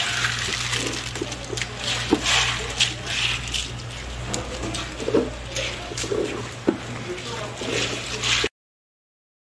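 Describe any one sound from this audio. Clams clatter and rattle against each other as a hand scoops them up.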